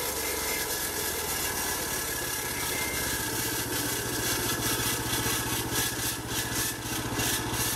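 A saw blade whines as it cuts through a log.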